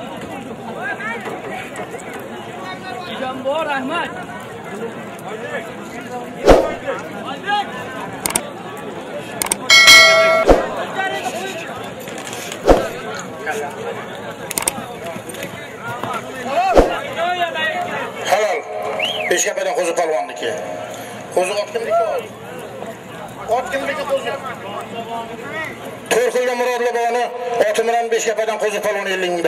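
A crowd murmurs and shouts in the background.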